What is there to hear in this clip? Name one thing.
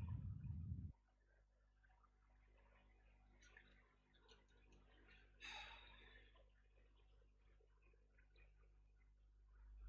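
A young woman speaks softly into a nearby microphone.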